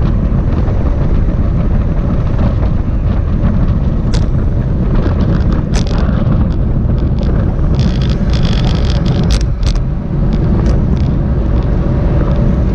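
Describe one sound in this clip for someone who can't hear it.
Strong wind roars past.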